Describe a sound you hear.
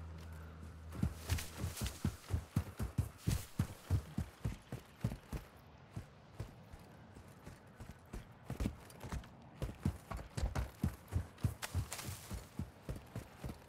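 Footsteps run quickly over dry, gritty ground.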